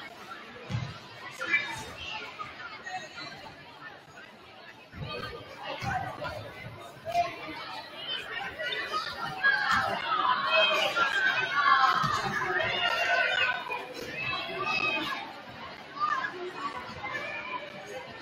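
A crowd of young people chatters and cheers in a large echoing gym.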